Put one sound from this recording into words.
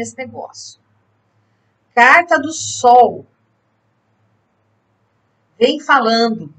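A woman speaks expressively and close to a microphone, in short bursts with pauses.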